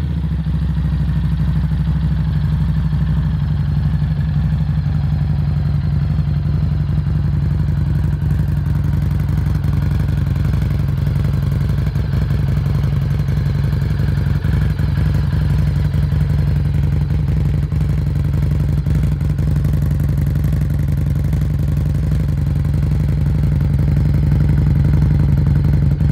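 A motorcycle engine idles with a deep, steady, throbbing rumble close by.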